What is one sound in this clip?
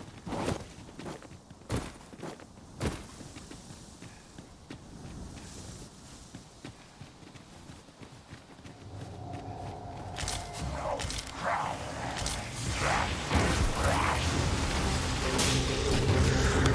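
Footsteps crunch over rock and dry grass.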